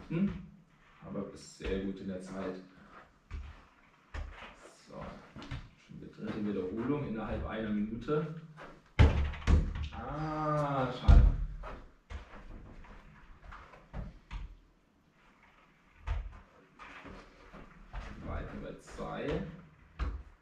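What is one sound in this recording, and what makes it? A man speaks calmly and closely in a small echoing room.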